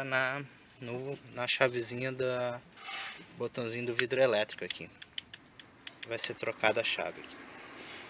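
A plastic switch clicks and rattles as it is handled.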